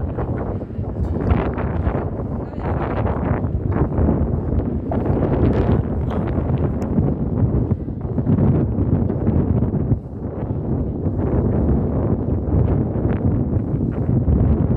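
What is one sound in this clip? Wind blusters loudly against the microphone outdoors.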